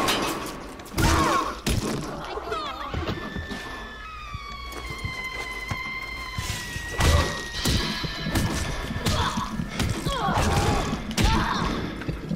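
A heavy metal wrench strikes a body with hard thuds.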